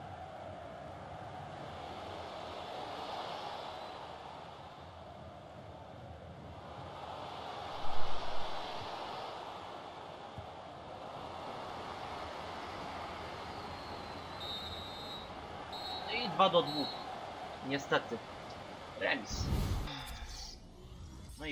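A large stadium crowd roars steadily, swelling and fading.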